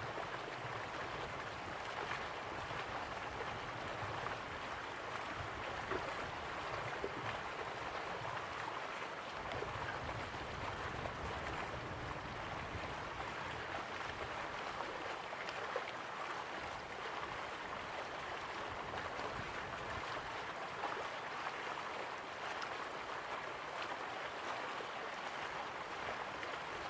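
Waterfalls rush and splash steadily in the distance.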